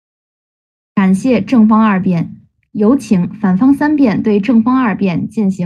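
A young man speaks quickly and with animation over an online call.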